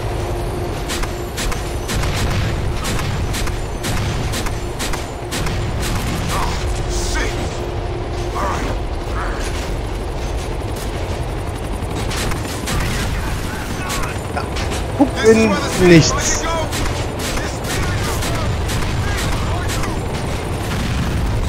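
A helicopter's rotor thumps overhead.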